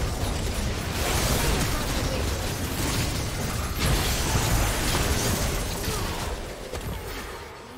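Video game spells whoosh and crackle during a fight.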